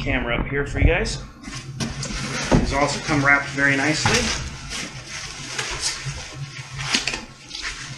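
Plastic foam wrapping rustles and crinkles.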